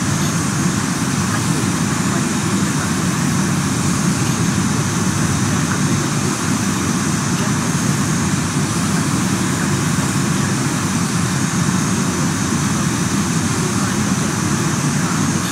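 A jet's engines whine and roar steadily nearby.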